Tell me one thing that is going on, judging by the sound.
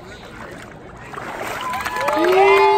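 Water splashes as a person is dipped under and lifted out.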